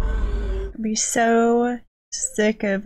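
A young woman whines and groans in distress.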